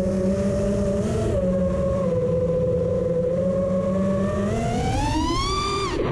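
A small drone's motors whine steadily close by, then rise sharply in pitch.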